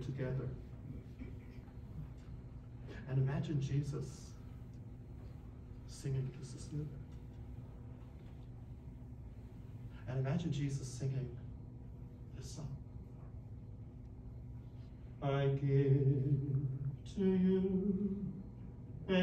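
An elderly man speaks calmly in a room with a slight echo, with pauses between phrases.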